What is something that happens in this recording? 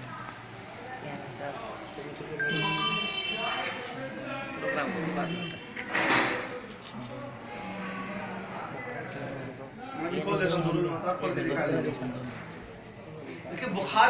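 Men talk and murmur together nearby in a small room.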